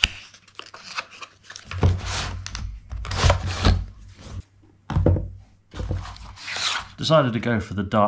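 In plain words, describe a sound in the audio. Cardboard packaging rustles and scrapes as a box is opened by hand.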